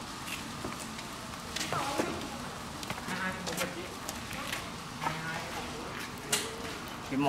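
A fire crackles and pops under a grill.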